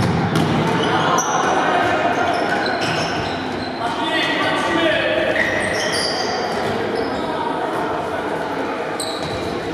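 A ball thuds as players kick it.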